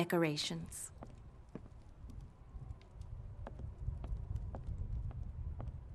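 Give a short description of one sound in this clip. Footsteps tap on a floor.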